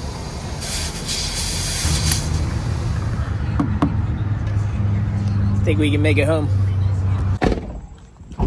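Air hisses loudly from a tyre inflator.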